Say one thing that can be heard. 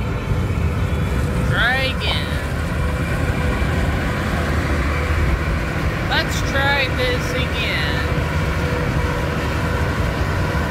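A large truck roars alongside, its tyres humming on the road.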